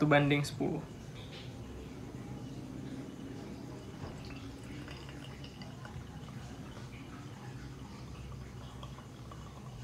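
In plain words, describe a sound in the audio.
Hot water trickles steadily from a kettle spout into a coffee filter.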